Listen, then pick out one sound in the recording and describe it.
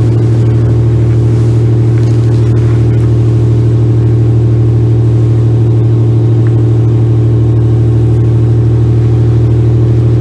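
Waves wash and splash against the hull.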